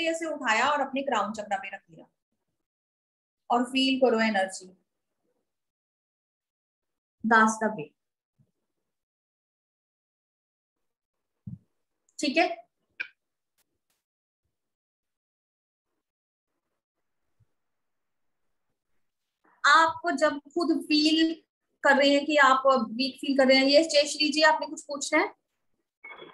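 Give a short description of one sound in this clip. A woman speaks calmly and closely into a microphone, with pauses.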